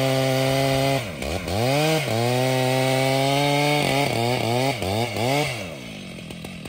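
A chainsaw engine revs up and down several times.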